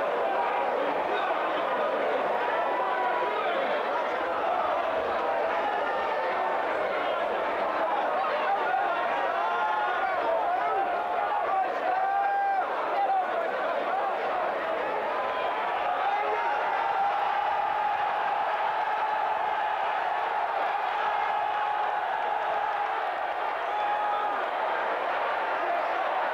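A large crowd cheers and shouts with excitement.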